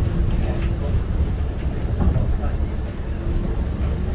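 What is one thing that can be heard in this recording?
A tram rumbles past on its tracks nearby.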